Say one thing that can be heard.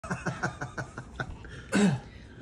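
A middle-aged man laughs heartily close by.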